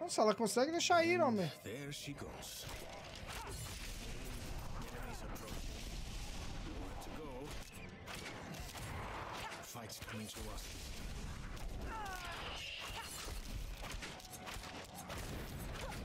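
Weapons clash and monsters shriek in a fast fight.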